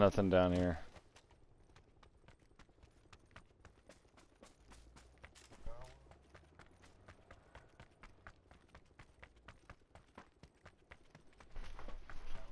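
Quick footsteps crunch steadily on gravel and grass.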